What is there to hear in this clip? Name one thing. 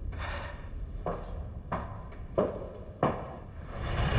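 Footsteps thud, drawing nearer.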